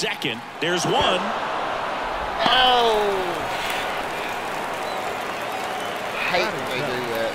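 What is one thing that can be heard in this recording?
A stadium crowd cheers.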